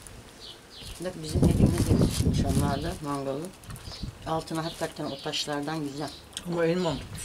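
A middle-aged woman talks with animation close by.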